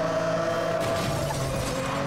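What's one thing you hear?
Metal scrapes with a grinding screech.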